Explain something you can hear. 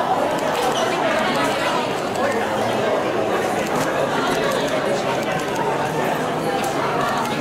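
A crowd chatters in a busy, noisy room.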